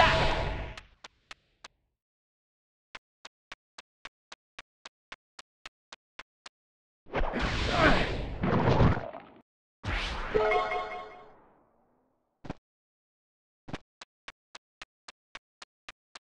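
Small footsteps tap quickly and evenly on the ground.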